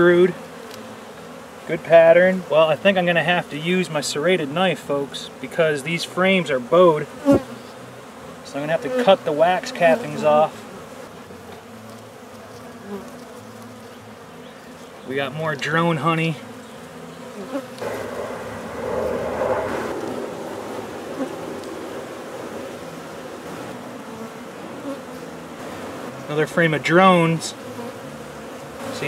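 Bees buzz around the hive.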